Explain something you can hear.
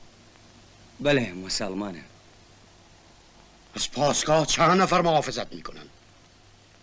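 A middle-aged man answers in a low, calm voice, close by.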